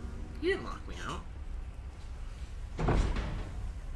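A heavy door creaks open.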